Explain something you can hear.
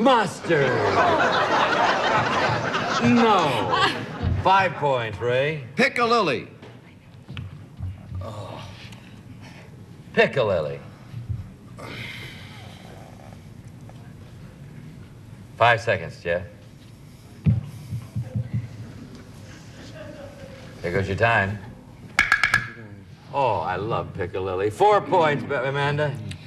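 A middle-aged man speaks into a microphone with a lively tone.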